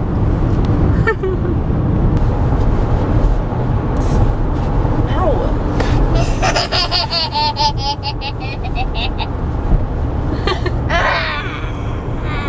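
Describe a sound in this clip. A young woman sings loudly and playfully close by.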